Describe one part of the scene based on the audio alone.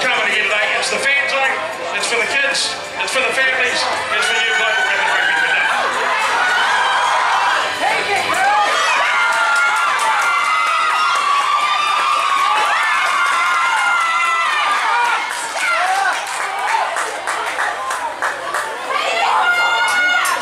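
Young girls shout and shriek excitedly on an open field.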